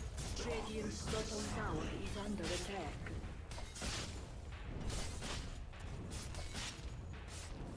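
Spells whoosh and crackle and weapons clash in a busy fight.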